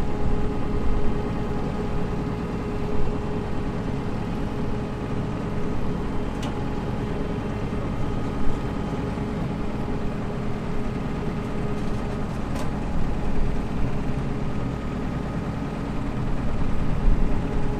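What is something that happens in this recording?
A large diesel engine idles with a steady hum.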